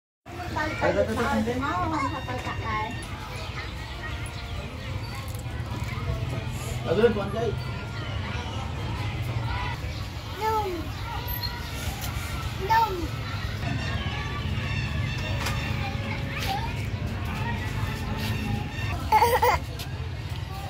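A small child babbles and squeals close by.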